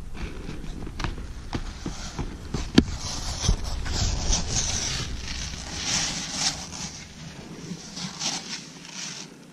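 Wind blows over the microphone outdoors.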